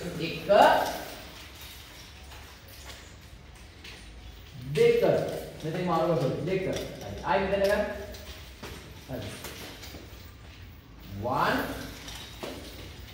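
A man calls out loud commands in an echoing hall.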